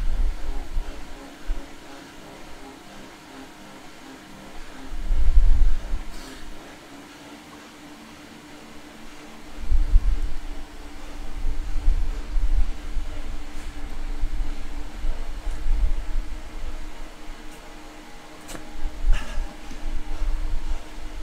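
A bicycle trainer hums steadily.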